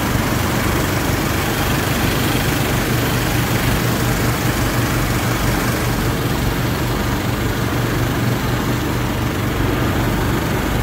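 A small petrol engine runs loudly and steadily close by.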